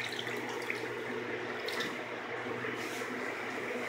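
Hands squeeze wet meat in a metal bowl.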